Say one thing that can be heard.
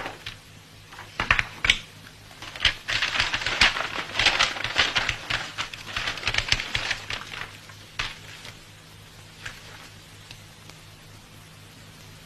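Paper rustles as an envelope is handled.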